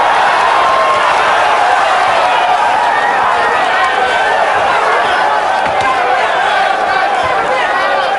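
Boxing gloves thud against a body in quick punches.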